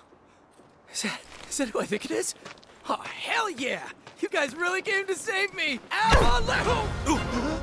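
A young man speaks excitedly and shouts with joy.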